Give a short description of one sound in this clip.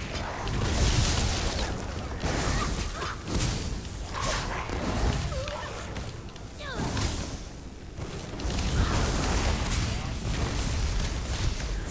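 Explosions of fire boom in short bursts.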